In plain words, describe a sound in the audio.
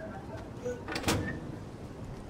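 A door bangs open.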